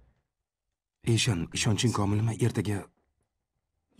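A man speaks softly, close by.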